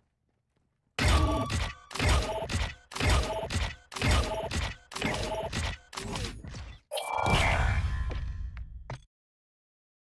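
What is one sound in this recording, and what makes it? Short electronic chimes ring out in quick succession as a game tallies up points.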